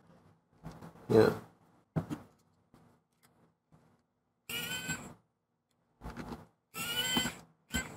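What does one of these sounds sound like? Small tools tap and click against a laptop casing.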